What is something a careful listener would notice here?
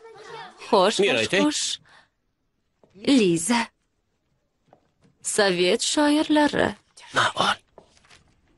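A woman speaks clearly and with animation, close by.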